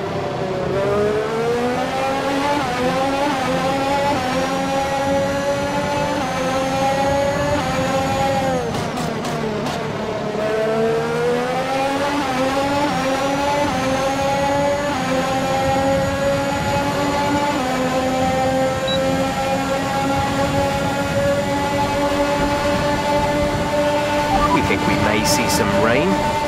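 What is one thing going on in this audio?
A racing car engine whines loudly, rising through the gears and dropping when braking.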